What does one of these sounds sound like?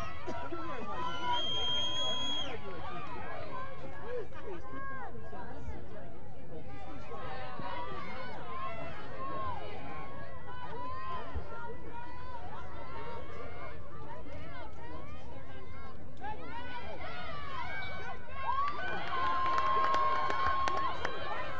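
Young women shout to each other across an outdoor field.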